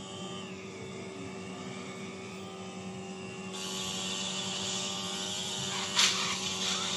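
A motorbike engine drones steadily through a small phone speaker.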